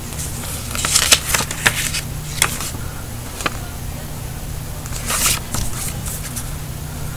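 Paper inserts rustle and crinkle as they are handled close by.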